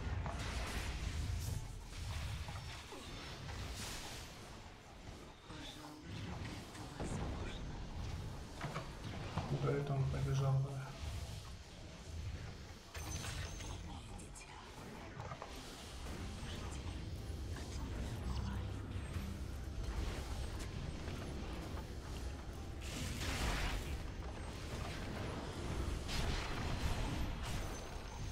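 Game spell effects crackle and whoosh in a fight.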